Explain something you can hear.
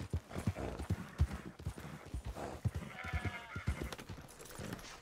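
Horse hooves thud on the ground at a trot.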